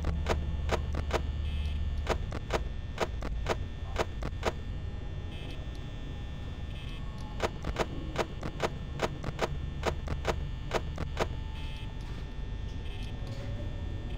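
An electric fan whirs with a steady low hum.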